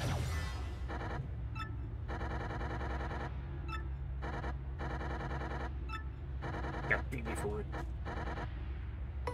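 Rapid electronic blips chatter in quick bursts.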